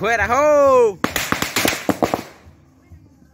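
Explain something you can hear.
Fireworks crackle and pop in rapid bursts close by.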